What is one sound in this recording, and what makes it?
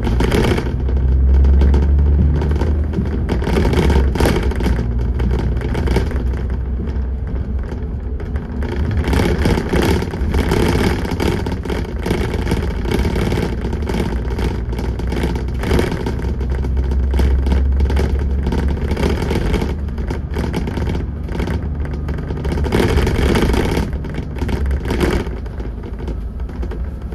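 A bus engine rumbles low and steadily as the bus drives along.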